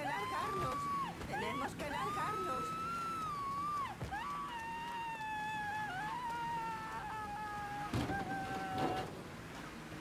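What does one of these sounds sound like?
A person screams in pain, with a high wavering voice.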